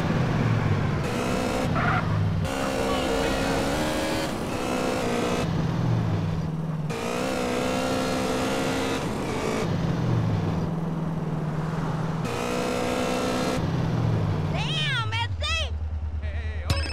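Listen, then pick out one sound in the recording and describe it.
A motorcycle engine roars as it speeds along.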